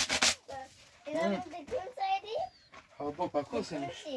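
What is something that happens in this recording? A young child talks nearby.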